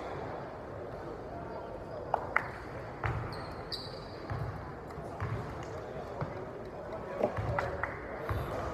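Sneakers squeak and shuffle on a wooden court in a large echoing hall.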